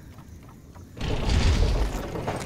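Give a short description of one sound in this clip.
A loud thump sounds on a wooden platform.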